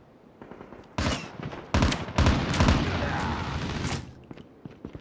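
Gunshots ring out in rapid, loud bursts.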